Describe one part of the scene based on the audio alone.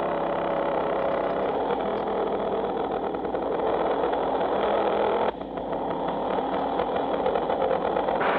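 A motorcycle engine hums as the motorcycle rides by.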